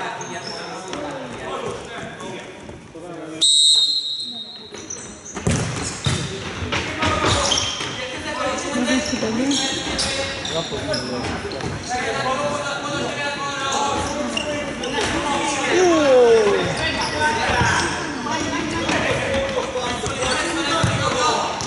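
A ball thumps on a hard floor as it is kicked.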